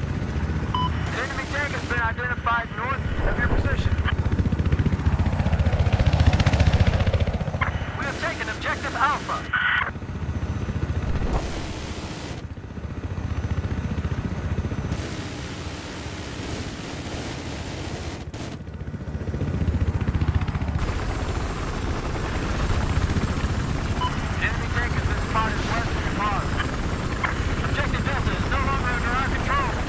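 A helicopter's rotor thumps and whirs steadily.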